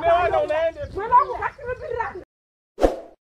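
A woman talks with animation.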